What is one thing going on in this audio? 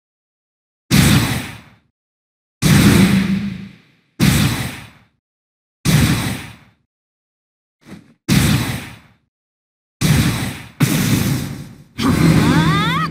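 Sharp video game battle hits ring out in quick bursts.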